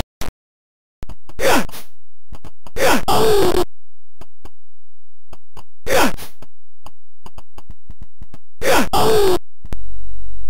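Harsh electronic grunts and crunching hits burst out in a fighting game.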